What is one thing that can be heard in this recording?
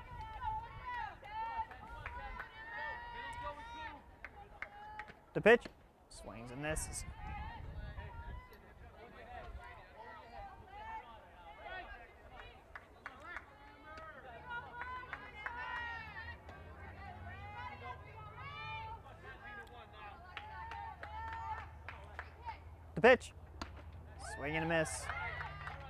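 Players on a field shout and cheer.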